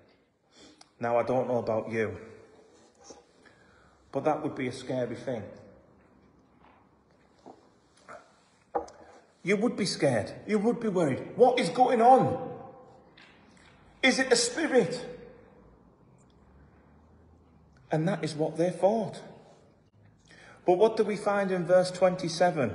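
A man speaks calmly and close to a microphone, in bursts with pauses, in a room with some echo.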